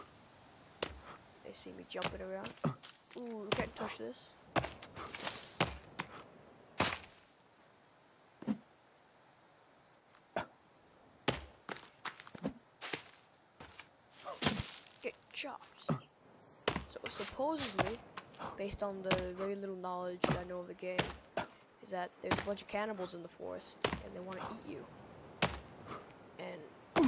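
Footsteps crunch through grass and low plants.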